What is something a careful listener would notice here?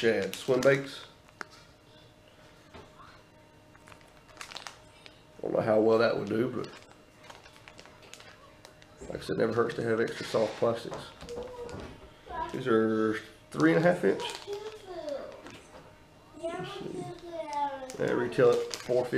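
A plastic wrapper crinkles in a man's hands.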